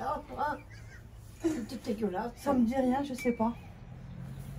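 A middle-aged woman laughs close by.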